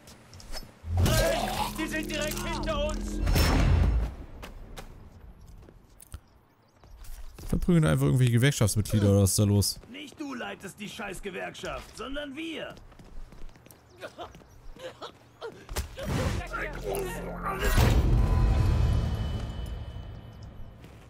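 Punches thud in a brawl.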